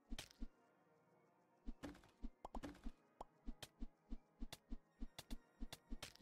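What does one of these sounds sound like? Short sound effects from a video game thump in a quick, steady rhythm.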